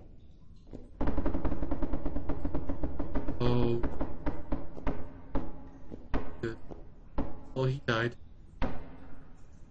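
A young man talks loudly and with animation into a close microphone.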